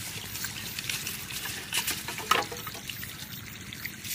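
A bamboo pole brushes through leafy plants.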